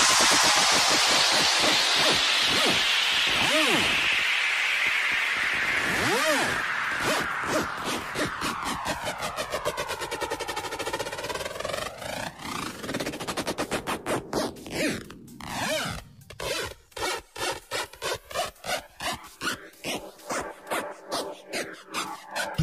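Loud electronic dance music plays with sweeping effects.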